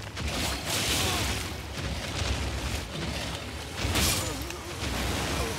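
A huge beast growls deeply.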